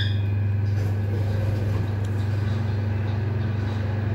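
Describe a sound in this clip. Elevator doors slide open.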